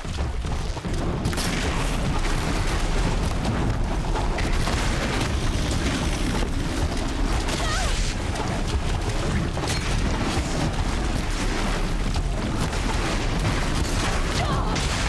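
Metal clanks and hisses as a large machine creature thrashes.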